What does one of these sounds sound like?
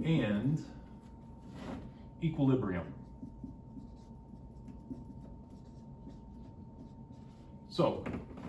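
A man speaks calmly and close by, pausing between phrases.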